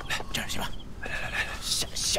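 A man calls out urgently.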